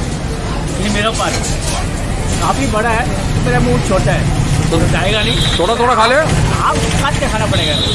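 A young man talks expressively up close, explaining.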